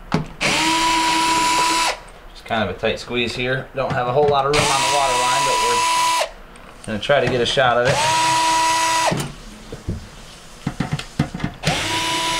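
A cordless drill whirs in short, steady bursts.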